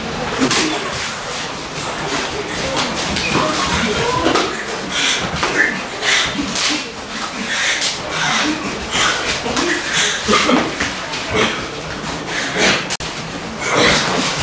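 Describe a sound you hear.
Sumo wrestlers collide, with bare skin slapping on bare skin.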